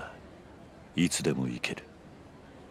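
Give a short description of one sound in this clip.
A second man answers briefly in a low, calm voice.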